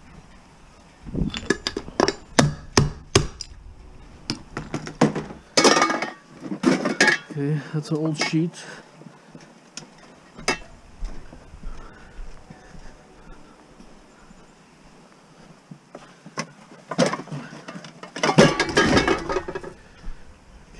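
Metal cans clank and rattle against each other.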